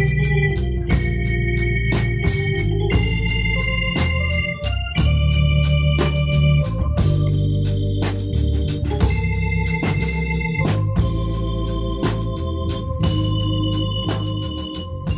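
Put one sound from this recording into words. Drums and cymbals keep a quick beat.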